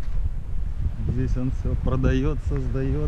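A man talks close to the microphone.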